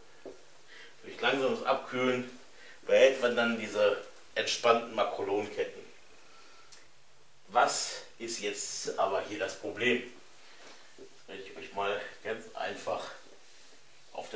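A middle-aged man explains with animation, close by.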